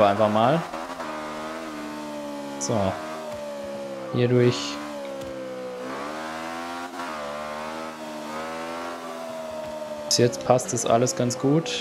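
A racing car engine roars at high revs, dropping briefly with each gear change.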